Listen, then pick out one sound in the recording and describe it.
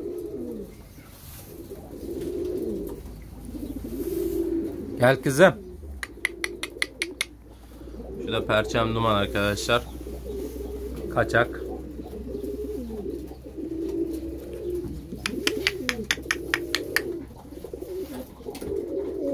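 Pigeons coo steadily close by.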